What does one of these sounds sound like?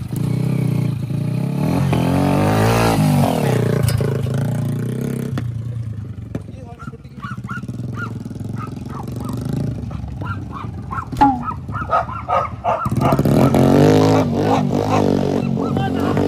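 A motorcycle engine revs loudly close by.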